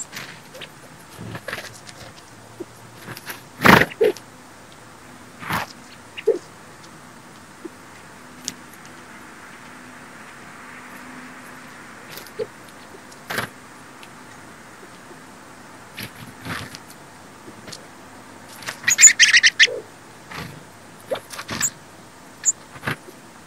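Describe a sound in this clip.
Small birds flutter their wings as they hop and land.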